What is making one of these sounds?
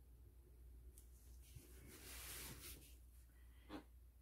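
A glass tile slides and rustles across paper towel.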